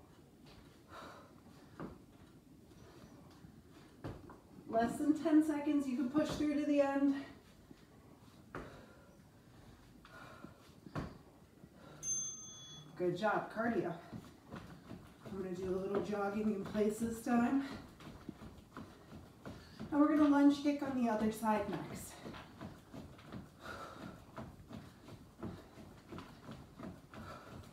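Feet thud and shuffle on a wooden floor.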